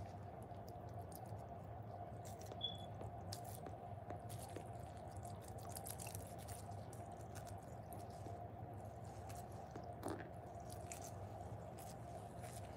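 Thick liquid pours onto a sponge and soaks in with soft crackles and fizzing.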